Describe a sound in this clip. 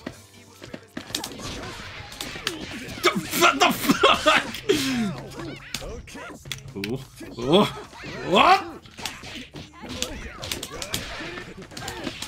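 Punches and kicks land with sharp smacks in quick bursts.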